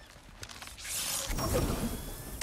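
A weapon swings with a loud whoosh.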